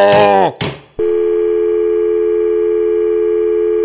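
An answering machine gives out a long, steady electronic tone.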